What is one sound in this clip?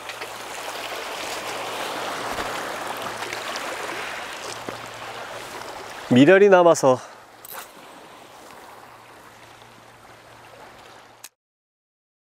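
Sea water laps gently against rocks outdoors.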